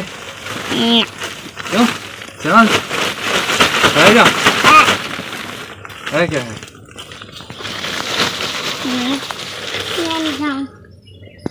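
A plastic sack rustles and crinkles.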